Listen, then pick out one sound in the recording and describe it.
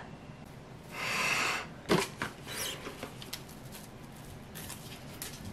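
Plastic cling wrap is pulled off a roll with a tearing rasp.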